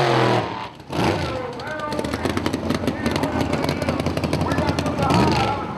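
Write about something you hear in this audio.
A race car speeds past with a roaring engine.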